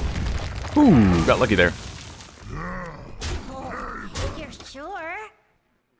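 Cartoonish creature sounds and magical effects play from a card game.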